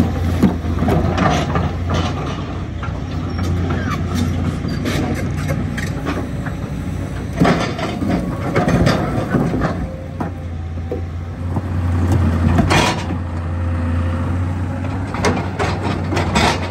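A diesel tracked excavator engine runs under load.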